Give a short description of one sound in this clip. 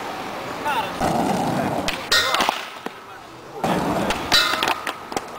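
Skateboard wheels roll over rough concrete.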